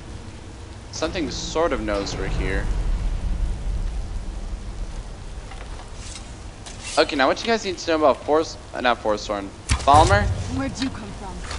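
A young man talks with animation into a close headset microphone.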